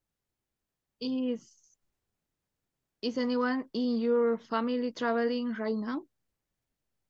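A woman speaks clearly through an online call.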